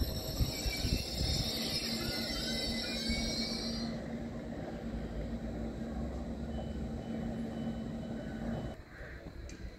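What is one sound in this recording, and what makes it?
A stopped train hums steadily nearby.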